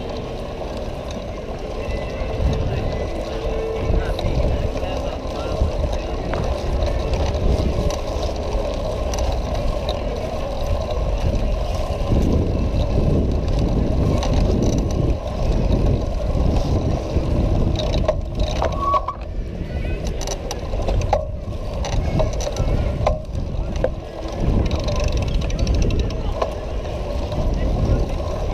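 Bicycle tyres rumble steadily over bumpy paving stones.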